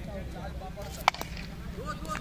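A cricket bat hits a ball with a sharp crack.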